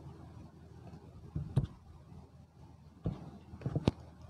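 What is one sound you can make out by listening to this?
Pages of a book rustle and tap near a microphone.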